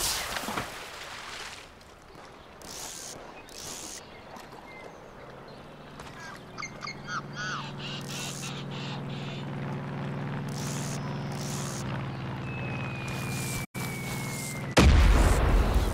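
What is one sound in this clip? A fishing reel whirs steadily as line is wound in.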